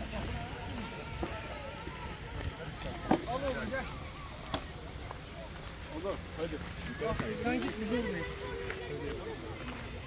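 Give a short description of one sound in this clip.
Young children chatter and call out nearby, outdoors.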